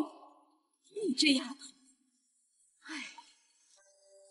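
A middle-aged woman speaks sternly, close by.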